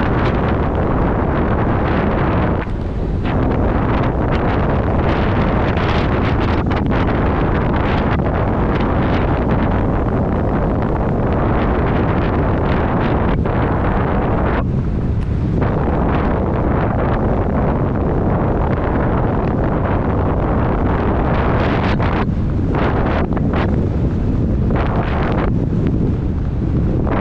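Wind roars and buffets steadily against a moving rider, with brief lulls.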